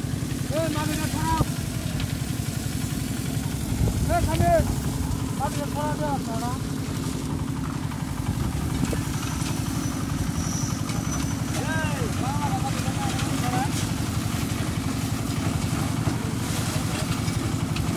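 A motor pump engine drones steadily nearby.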